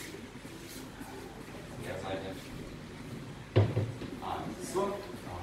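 Shoes shuffle and thump on a wooden floor.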